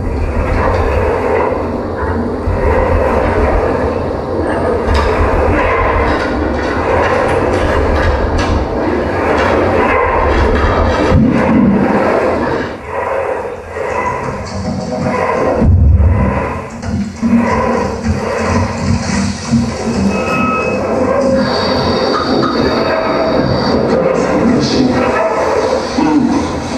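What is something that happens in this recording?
Dense, crackling electronic noise music plays loudly and keeps shifting.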